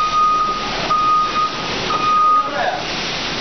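A forklift's warning beeper beeps in short pulses.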